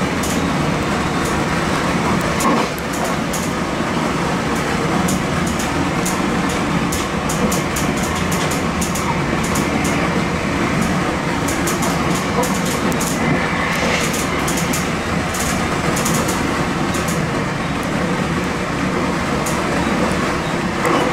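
A train rumbles steadily along the tracks from inside the cab.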